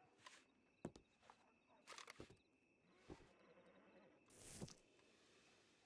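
Footsteps thud on wooden floorboards.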